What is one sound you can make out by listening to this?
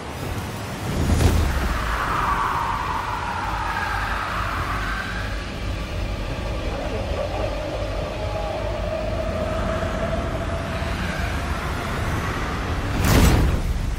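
A magical burst whooshes and swirls with a deep rumble.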